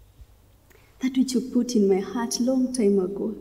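A young woman prays aloud with feeling, close by.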